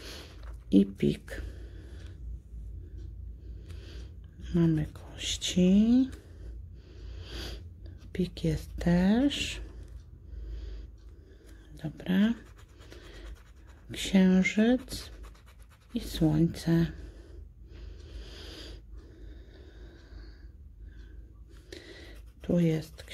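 A coin scratches across a card with a soft, dry rasp.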